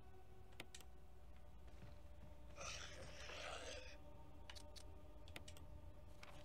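A video game menu clicks and beeps in short blips.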